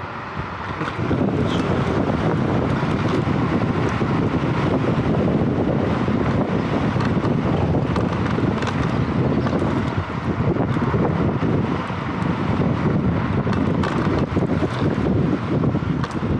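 Wind rushes loudly past the rider at speed.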